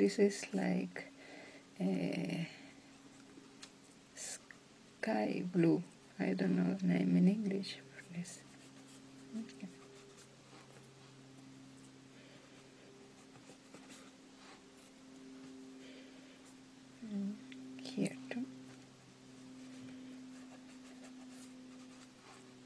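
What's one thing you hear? A brush pen softly scratches and strokes across paper.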